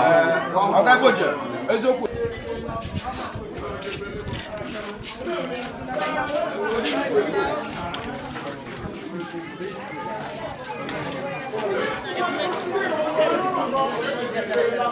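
A crowd of women and men chatter nearby.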